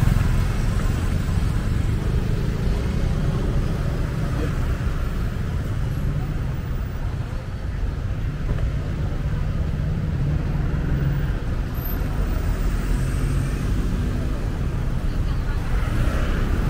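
Street traffic drones around with cars and scooters passing.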